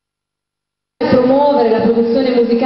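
A woman sings loudly into a microphone through loudspeakers.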